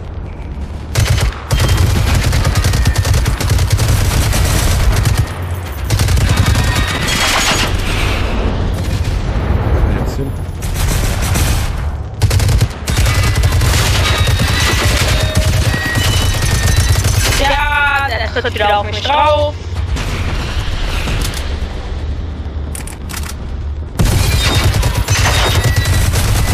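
Rapid gunfire rattles loudly and repeatedly.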